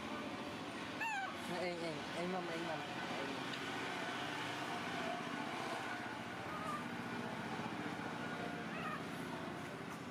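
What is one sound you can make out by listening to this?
A baby monkey squeals with short, high cries.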